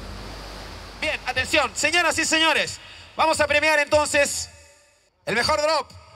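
A man announces loudly through a loudspeaker.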